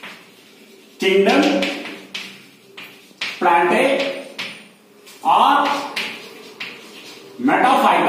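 A man speaks clearly and steadily, close by.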